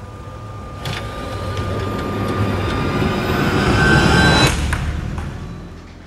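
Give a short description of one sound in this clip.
A car engine runs and rumbles as the car rolls forward.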